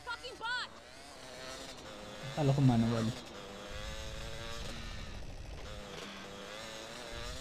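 A quad bike engine hums steadily.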